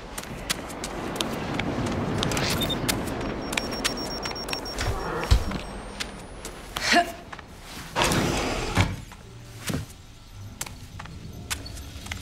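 Footsteps fall slowly on a hard floor.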